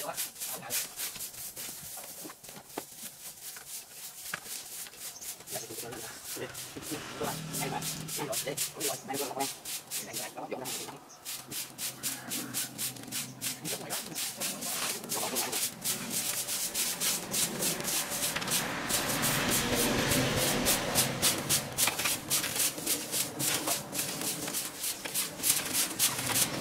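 Rakes scrape through dry grass and leaves.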